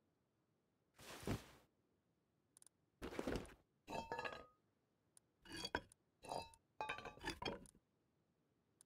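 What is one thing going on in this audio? Gear items clatter and rustle in short bursts as they are moved.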